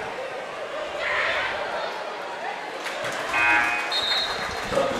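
A crowd cheers briefly after a free throw.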